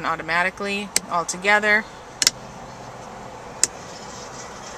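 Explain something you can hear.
A switch clicks as a finger presses it.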